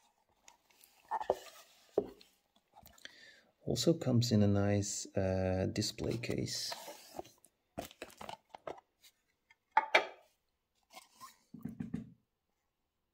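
A plastic display case clicks and rattles as it is handled.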